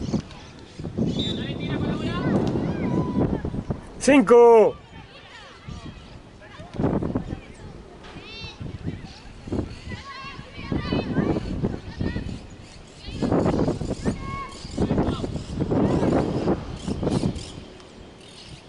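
Young women shout to each other across an open outdoor field.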